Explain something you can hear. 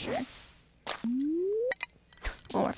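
A fishing line whizzes out as it is cast in a game.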